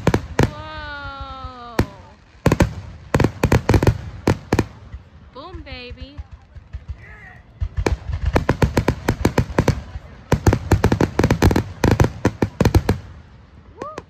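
Aerial fireworks burst with sharp bangs.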